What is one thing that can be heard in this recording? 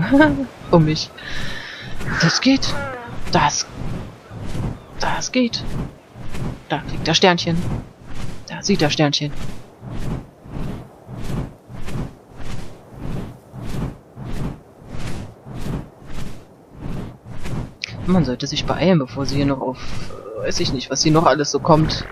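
Large wings flap in steady, rhythmic beats.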